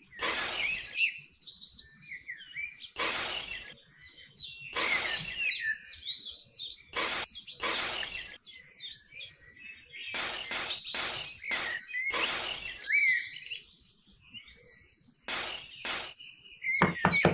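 A small trowel scrapes and digs into loose sand.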